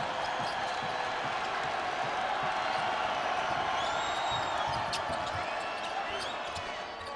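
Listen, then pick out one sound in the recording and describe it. A large indoor crowd cheers and roars loudly throughout.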